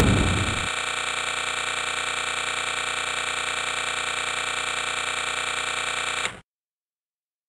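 Video game guns fire in a fast, steady rattle.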